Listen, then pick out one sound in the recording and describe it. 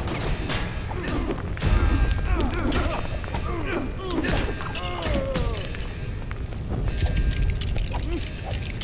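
Blasts and metal impacts crack sharply, again and again.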